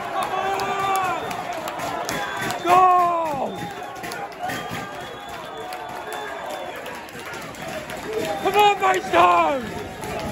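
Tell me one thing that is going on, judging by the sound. Men clap their hands.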